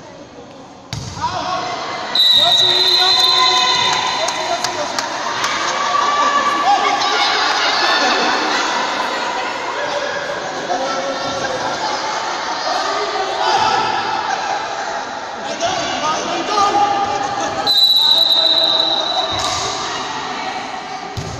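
Young women call out and chatter in a large echoing hall.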